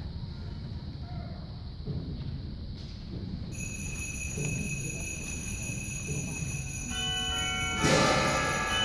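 A band tunes up softly in a large echoing hall.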